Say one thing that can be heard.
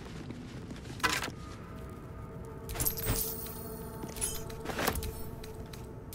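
Short menu clicks and chimes sound a few times.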